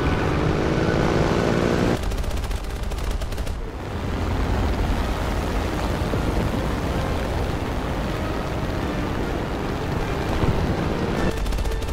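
A propeller plane's engine drones loudly and steadily.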